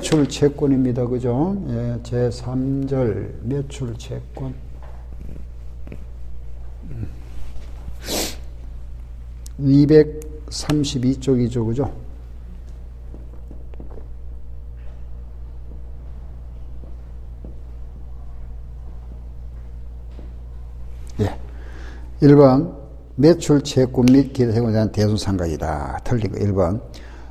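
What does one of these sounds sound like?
An older man speaks calmly into a close microphone, explaining.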